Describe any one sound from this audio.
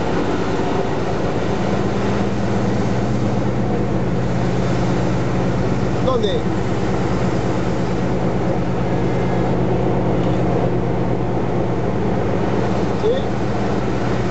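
Trucks rumble past close by.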